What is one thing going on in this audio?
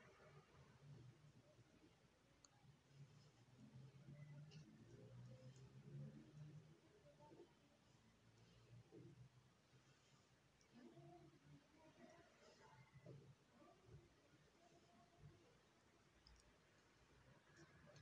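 A crochet hook softly rubs and pulls through yarn.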